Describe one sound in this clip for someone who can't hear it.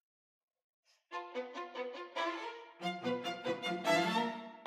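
A string quartet begins playing a lively piece in a resonant hall.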